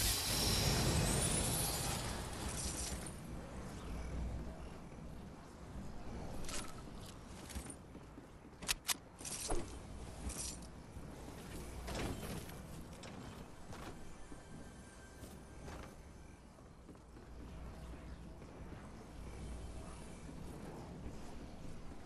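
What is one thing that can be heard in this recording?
Footsteps thud on wooden boards in a game.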